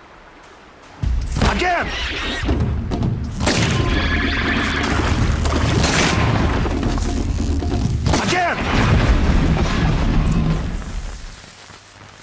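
A large machine crashes and roars loudly nearby.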